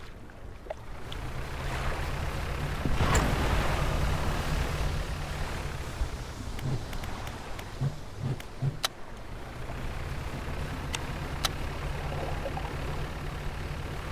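Water splashes and churns behind a moving boat.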